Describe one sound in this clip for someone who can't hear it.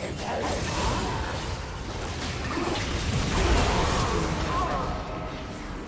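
Magic blasts crackle and whoosh in a fast fantasy battle.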